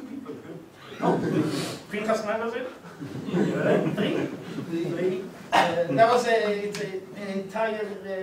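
A man speaks with animation to an audience.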